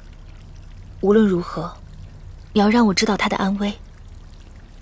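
A young woman speaks softly and closely.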